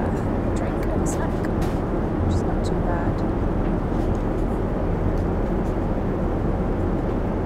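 Jet engines roar with a steady, low drone inside an airliner cabin.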